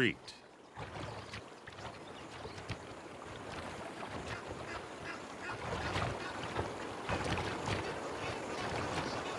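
Water splashes and sloshes as a crocodile thrashes in the shallows.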